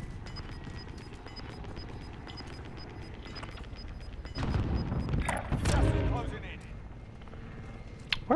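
A helicopter drones in the distance.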